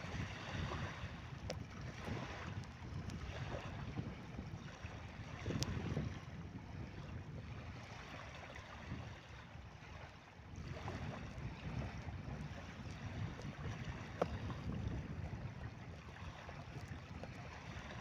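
Small waves lap gently on a sandy shore nearby.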